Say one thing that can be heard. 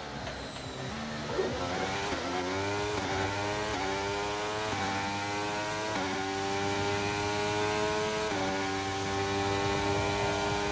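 A racing car engine roars, rising in pitch and shifting up through the gears.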